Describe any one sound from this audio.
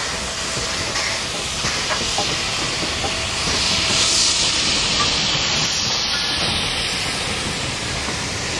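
A steam locomotive chuffs past, working hard.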